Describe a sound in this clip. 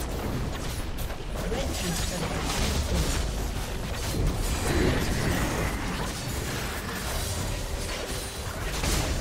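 Blasts boom in a chaotic fight.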